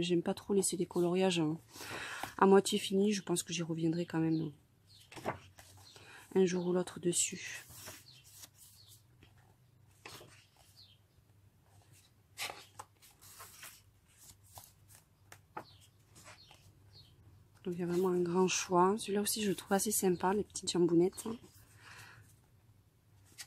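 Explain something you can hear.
Paper pages are turned with soft rustles.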